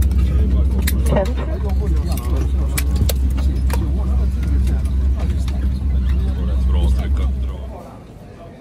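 Passengers murmur and talk in an aircraft cabin.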